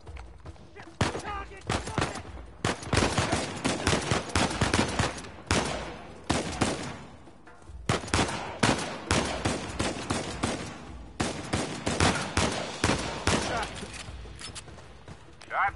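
Pistol shots crack repeatedly in quick bursts, echoing sharply.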